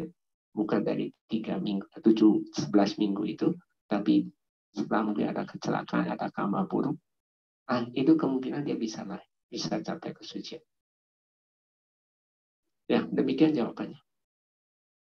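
A man speaks calmly into a microphone, heard through an online call.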